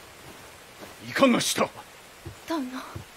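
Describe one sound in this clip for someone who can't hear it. A man shouts sharply.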